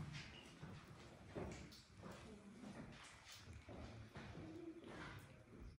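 Water drips into a still pool, echoing.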